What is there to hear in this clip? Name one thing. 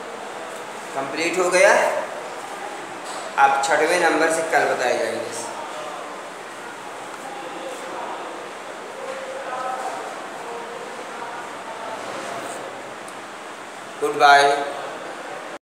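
A middle-aged man speaks calmly close by, in short bursts with pauses.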